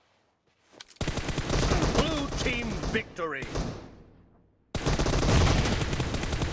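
Rapid rifle shots fire close by.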